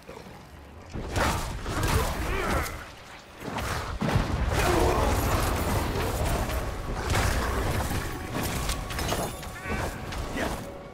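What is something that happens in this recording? Spells and fire blasts boom and crackle.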